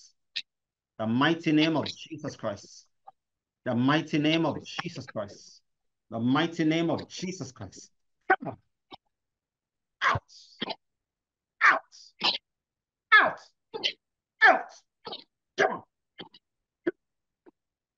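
A young man prays loudly and forcefully over an online call.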